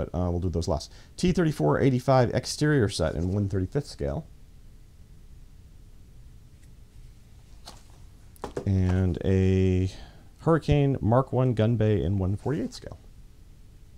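A middle-aged man talks calmly and close to a microphone, in bursts with pauses.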